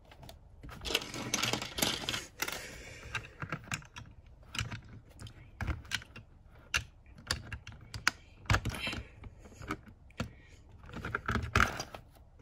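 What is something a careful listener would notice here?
Plastic toy bricks rattle and scrape on a plastic baseplate.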